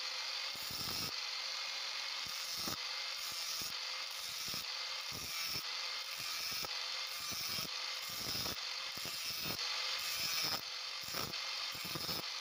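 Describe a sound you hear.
An angle grinder whines steadily at high speed.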